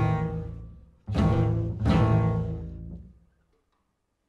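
A jazz band plays a final ringing chord that fades out.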